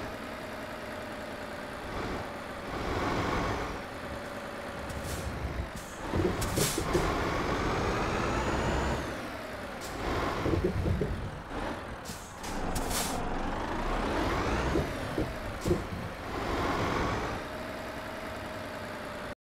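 A truck engine hums and drones, rising and falling as it speeds up and slows down.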